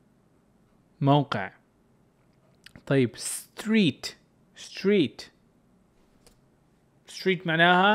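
A young man speaks clearly into a close microphone, in short phrases with pauses.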